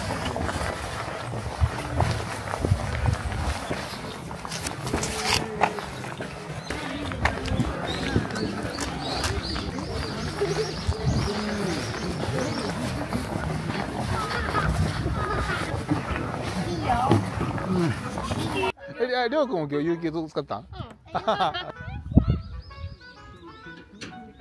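Men and women chat nearby and at a distance outdoors.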